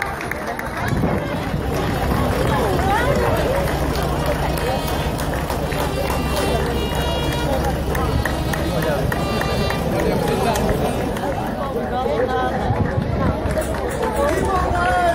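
Folk music plays from a passing parade float.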